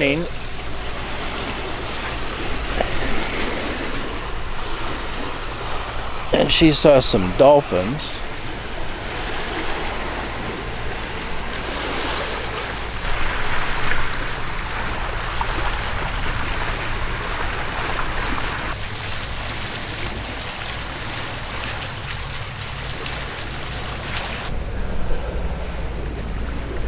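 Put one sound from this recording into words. Wind blows steadily across the open water.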